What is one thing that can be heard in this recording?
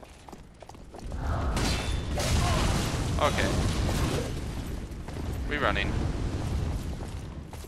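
Weapons clash and thud in a fight.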